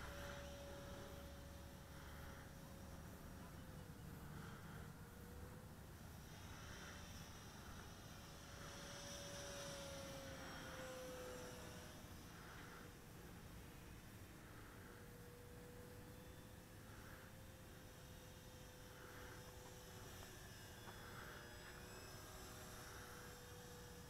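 A small motor drones steadily close by, its pitch wavering slightly.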